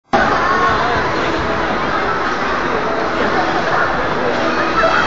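Many voices chatter and echo through a large hall.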